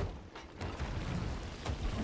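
Water sprays into a leaking wooden hull.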